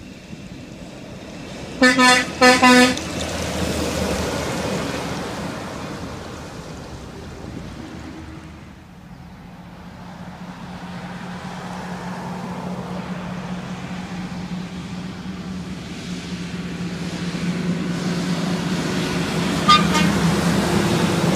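Heavy trucks rumble past on the road.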